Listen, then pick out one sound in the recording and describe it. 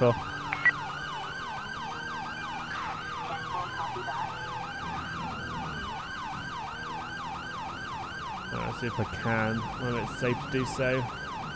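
A police siren yelps in fast, rising and falling sweeps.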